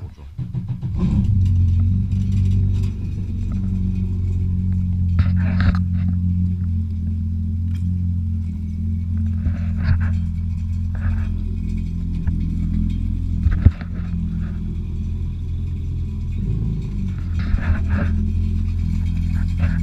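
A jet ski engine starts and idles with a steady low rumble.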